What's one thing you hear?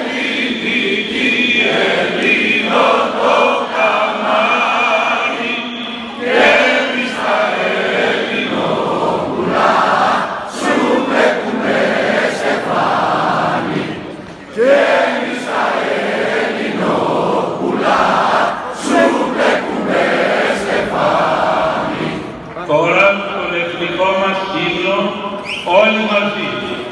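An elderly man speaks solemnly through a loudspeaker outdoors.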